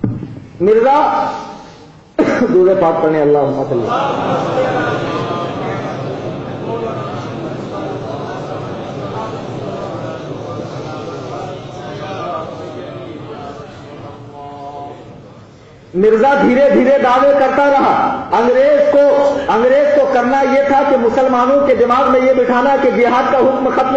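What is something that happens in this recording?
A man speaks passionately into a microphone, his voice echoing.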